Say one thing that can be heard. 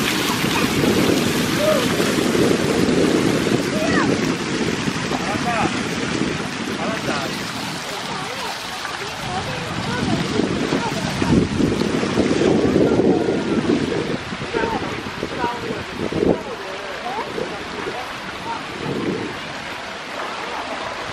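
Water pours and splashes steadily over a low ledge.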